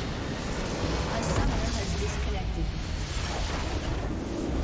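A large explosion booms and crumbles.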